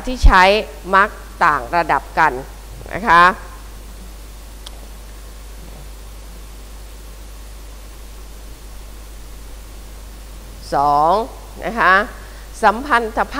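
A woman speaks calmly into a microphone, pausing between phrases.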